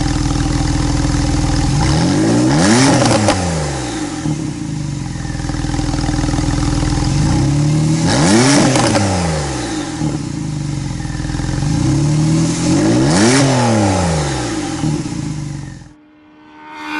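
A sports car engine idles with a deep rumble and revs up sharply three times.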